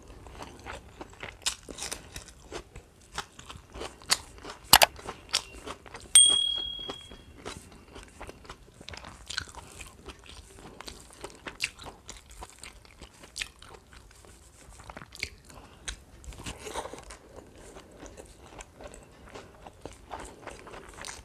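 A woman chews and smacks food close to a microphone.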